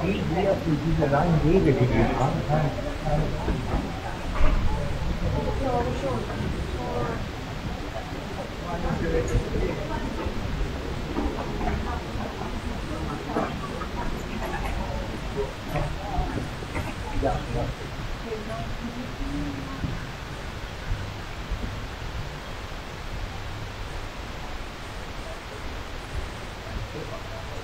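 A crowd of travellers murmurs and chatters in a large echoing hall.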